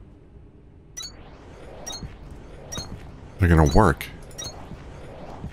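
Short electronic blips sound several times.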